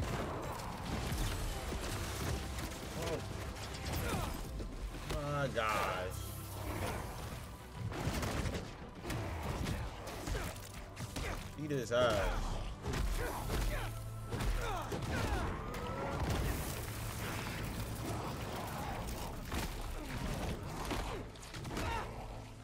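A young man talks with animation into a microphone.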